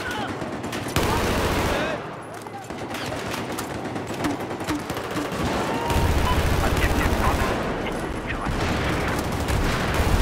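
Explosions boom with a deep rumble.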